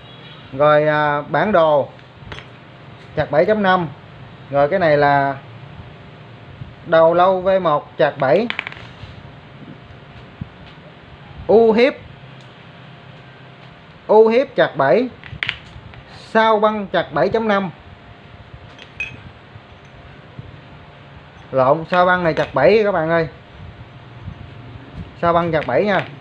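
Metal pieces clink against each other as they are handled.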